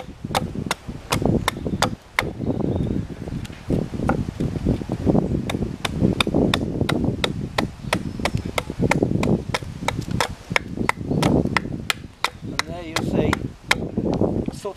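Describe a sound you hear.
A hatchet chops into wood with quick, sharp knocks.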